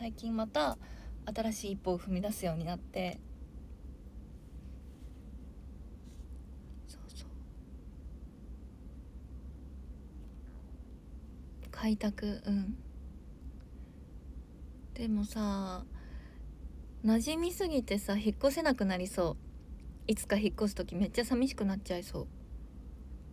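A young woman talks casually and close by, in bursts with pauses.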